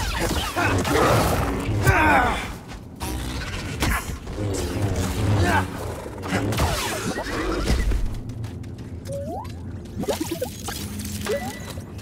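A lightsaber hums and whooshes through the air.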